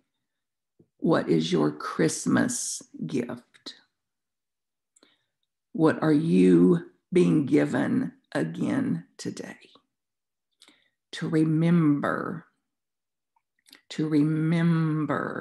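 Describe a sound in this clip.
An elderly woman speaks calmly through an online call, in short phrases with pauses.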